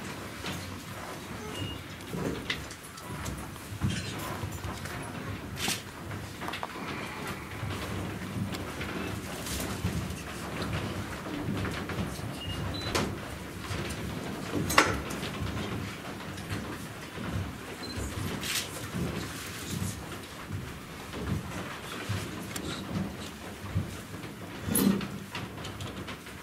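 Footsteps shuffle and tap on a wooden stage.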